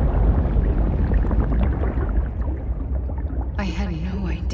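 Water bubbles and rumbles in a deep, muffled wash.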